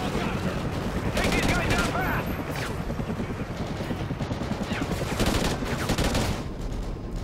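A rifle fires.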